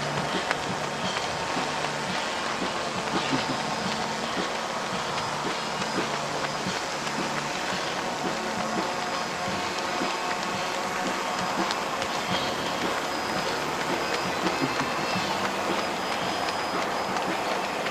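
Footsteps of runners patter on asphalt.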